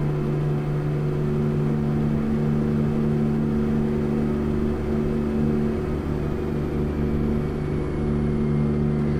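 A truck's diesel engine drones steadily from inside the cab.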